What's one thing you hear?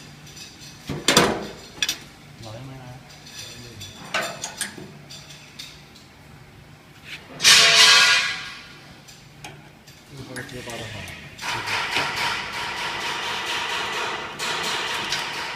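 Metal rods clink and knock against a metal frame.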